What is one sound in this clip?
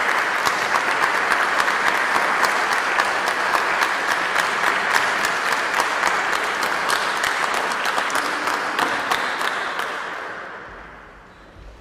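An audience applauds loudly in a large echoing hall, then the clapping fades away.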